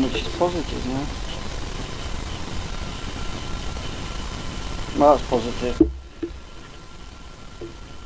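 A plastic bottle is picked up and knocks on a table.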